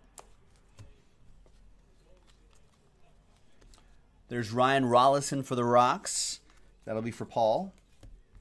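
Trading cards rustle and slap softly as hands shuffle them.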